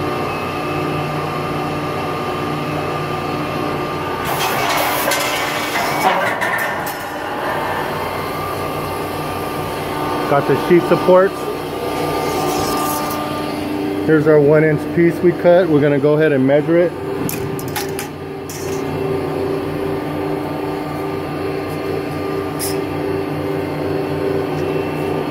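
A large metal shearing machine hums steadily nearby.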